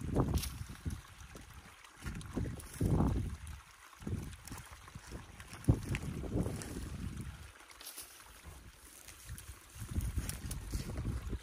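Footsteps rustle through dry grass and squelch in mud.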